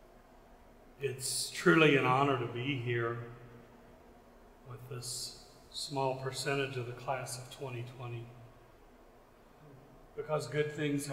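A middle-aged man speaks calmly through a microphone in a large echoing hall.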